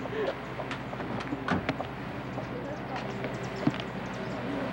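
A car door clicks and knocks.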